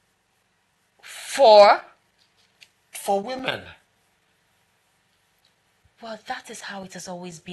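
A young woman speaks with emotion close by.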